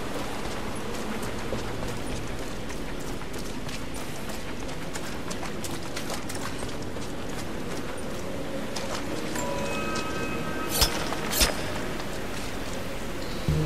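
Footsteps crunch over rubble and gravel.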